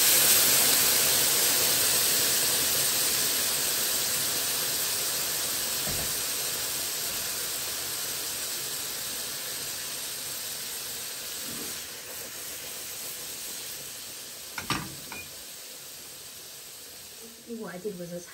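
Food sizzles loudly in a hot frying pan, slowly quieting down.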